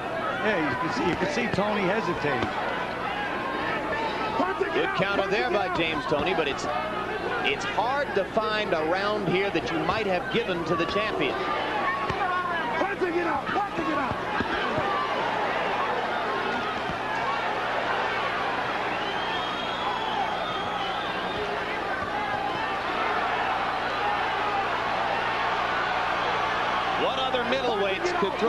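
A large crowd cheers and roars in a big arena.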